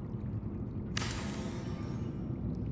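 A building tool starts with a sudden bright hiss.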